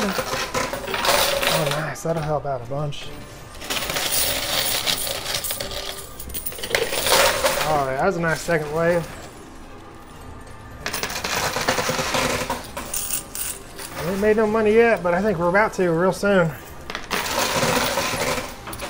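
Coins clink and rattle as a machine pushes them forward.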